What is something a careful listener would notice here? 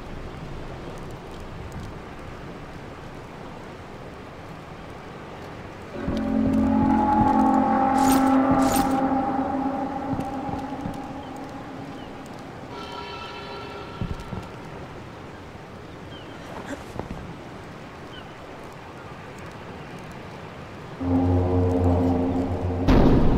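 Footsteps tread softly on stone.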